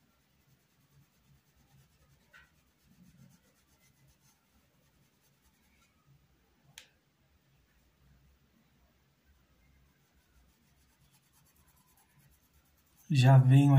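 A paintbrush softly brushes across fabric.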